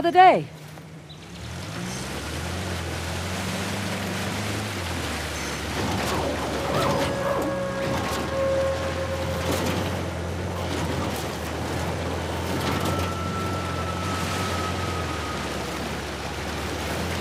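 A jeep engine hums steadily as it drives.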